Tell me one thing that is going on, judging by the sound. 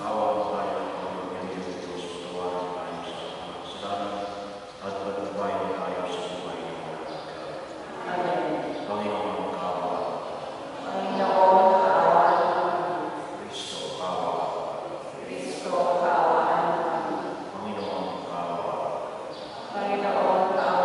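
A man chants slowly through a microphone and loudspeakers, echoing in a large hall.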